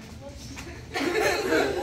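Children talk and laugh together.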